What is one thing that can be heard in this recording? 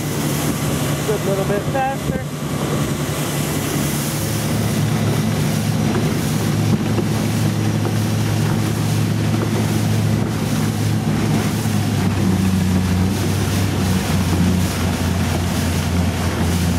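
Water rushes and splashes in the boat's wake.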